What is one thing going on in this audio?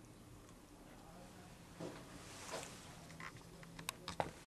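An elderly man speaks briefly and calmly, close by.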